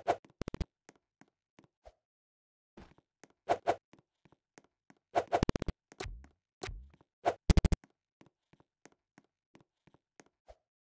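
Short electronic game sound effects pop and zap in quick bursts.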